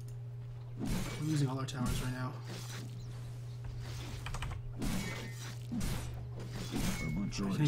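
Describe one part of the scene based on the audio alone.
Swords clash and spells burst in a fight.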